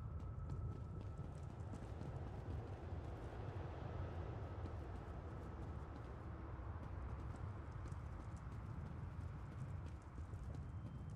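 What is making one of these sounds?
A low, steady wind rumbles.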